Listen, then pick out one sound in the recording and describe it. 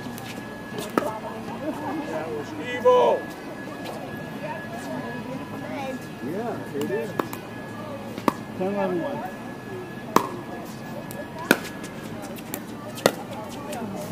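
Paddles sharply pop against a plastic ball, again and again.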